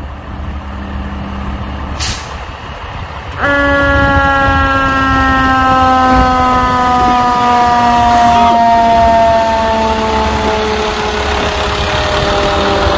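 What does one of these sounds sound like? A diesel fire engine rumbles past.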